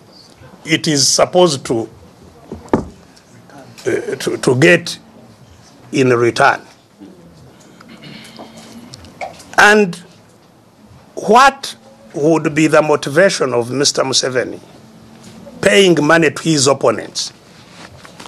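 An elderly man speaks forcefully, in short bursts with pauses, through a microphone.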